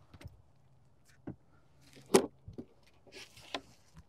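A wooden hive lid scrapes as it is lifted off.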